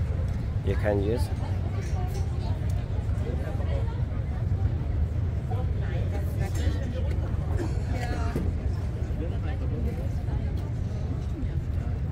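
People chat and talk nearby in a crowd outdoors.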